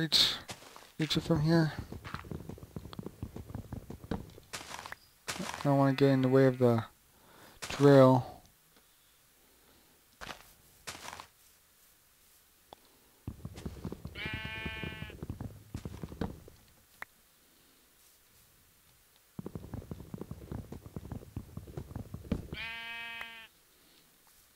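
Blocks are broken with repeated crunching scrapes.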